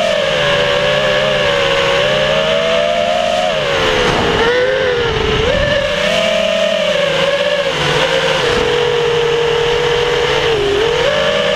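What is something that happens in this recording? A small drone's propellers whine loudly, rising and falling in pitch.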